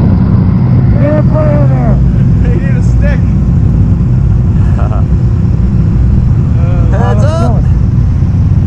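Men talk loudly over the engines in short bursts.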